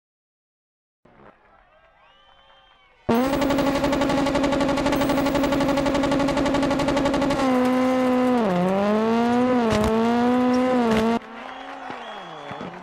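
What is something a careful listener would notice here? A rally car engine revs loudly and roars away.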